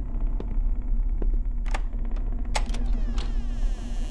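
A wooden door creaks slowly open.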